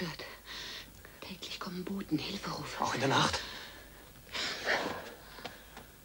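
A man speaks tensely close by.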